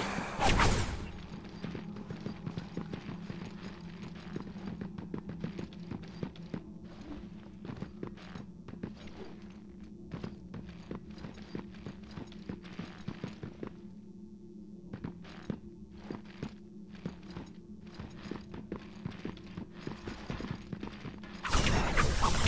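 Heavy footsteps clatter quickly on hard steps.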